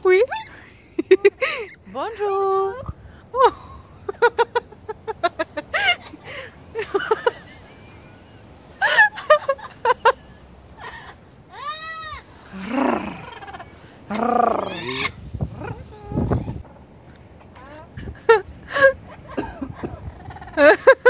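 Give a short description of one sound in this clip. A parrot squawks, chatters and mimics voice-like sounds up close.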